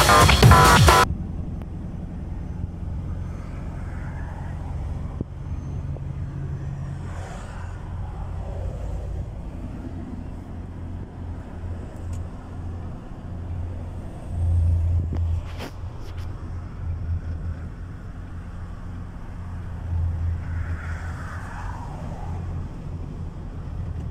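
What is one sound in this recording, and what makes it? A truck engine hums low and steady while driving.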